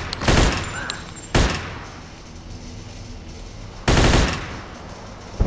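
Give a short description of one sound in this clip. Gunshots ring out loudly and echo.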